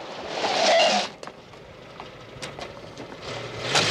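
A car door opens with a click.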